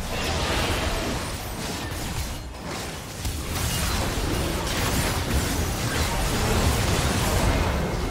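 Spell blasts and combat sound effects from a video game crash and whoosh repeatedly.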